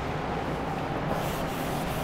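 A cloth rubs across a chalkboard.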